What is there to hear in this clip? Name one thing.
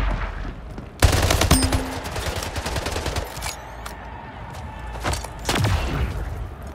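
Sniper rifle shots boom loudly, one after another.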